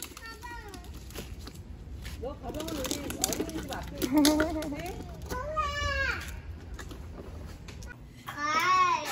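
Plastic wheels rumble over paving stones.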